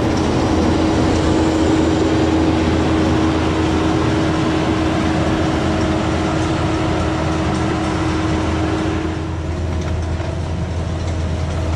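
A diesel engine rumbles steadily and slowly grows quieter.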